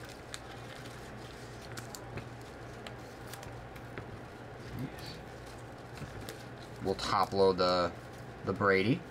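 Trading cards rustle and click softly as they are handled.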